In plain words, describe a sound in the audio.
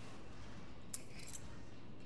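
Keys jingle as they are picked up.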